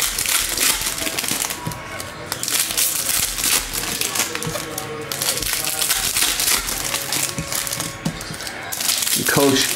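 Cards rustle and flick as they are shuffled by hand.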